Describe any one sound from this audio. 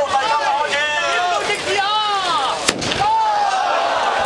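A firework rocket whistles as it shoots upward.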